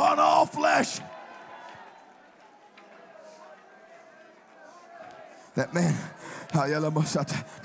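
A man shouts with fervour through a microphone.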